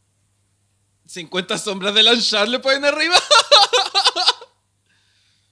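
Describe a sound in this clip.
A young man laughs heartily close to a microphone.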